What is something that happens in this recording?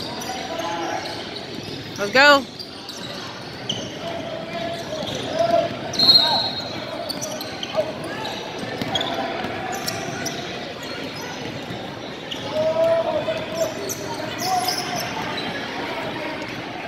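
Young girls call out to each other in a large echoing gym.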